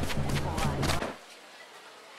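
Footsteps tap on a hard street.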